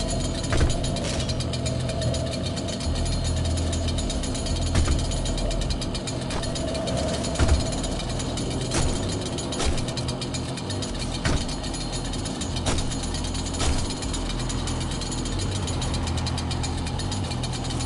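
A chainsaw idles with a low, rumbling engine sound.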